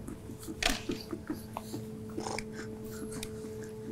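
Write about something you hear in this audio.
A shoe heel bangs against a block of ice.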